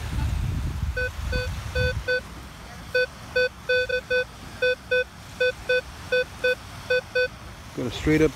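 A metal detector beeps in quick, even pulses.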